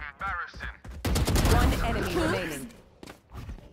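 A rifle fires a quick burst of gunshots.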